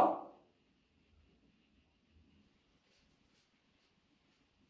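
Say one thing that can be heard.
Small objects clink softly in a man's hands.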